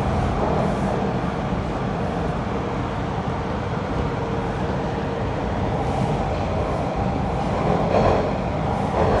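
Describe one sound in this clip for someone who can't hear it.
A subway train rumbles and rattles loudly along the tracks.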